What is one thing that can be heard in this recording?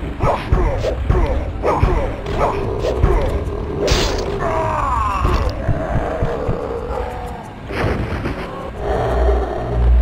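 Blades swing and clash in a fight.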